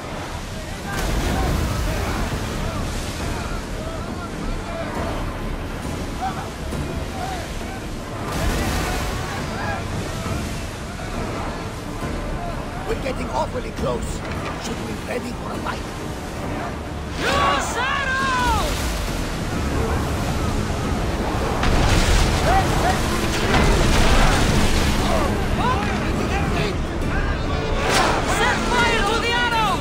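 Men shout and cry out in battle.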